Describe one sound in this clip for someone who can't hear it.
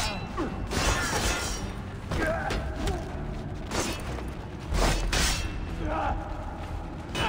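Men grunt and cry out in a fight.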